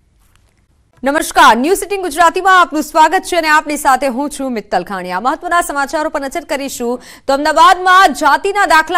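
A young woman speaks calmly and clearly into a microphone.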